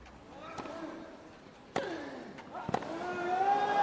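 A tennis ball is struck with rackets in a rally.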